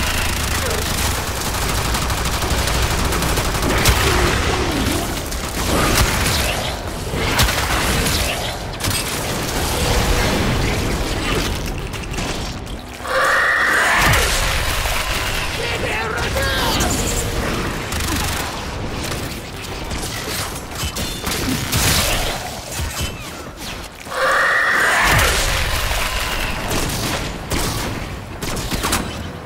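Gunfire and energy blasts crackle in rapid bursts.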